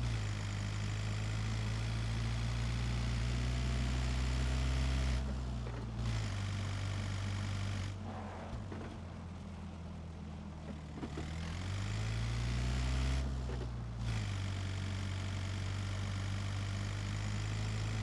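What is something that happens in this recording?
A van engine hums and drones as it drives, rising and falling with speed.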